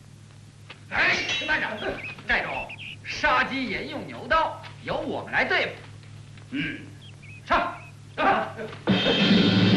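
A middle-aged man speaks commandingly.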